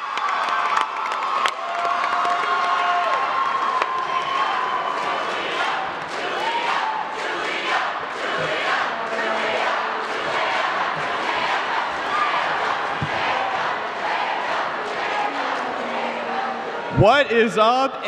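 A crowd of young people cheers and chatters loudly.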